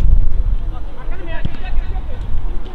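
Distant male players shout to each other across an open field.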